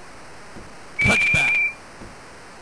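A referee's whistle blows briefly in a video game.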